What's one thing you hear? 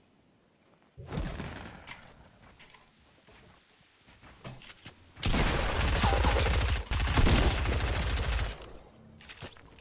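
Wooden walls clatter quickly into place as they are built.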